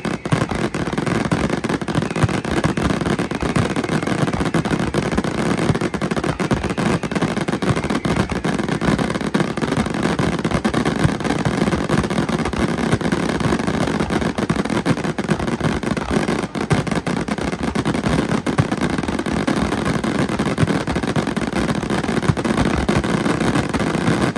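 Fireworks bang and crackle rapidly without pause.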